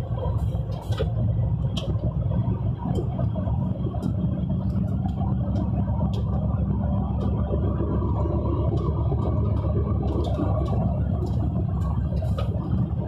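A heavy vehicle's engine drones, heard from inside the cab while cruising along a highway.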